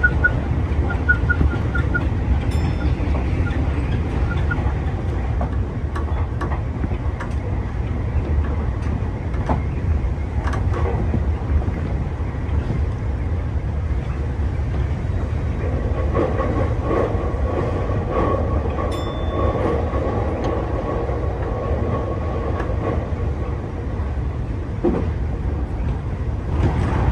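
A train rumbles steadily along the tracks, heard from inside the cab.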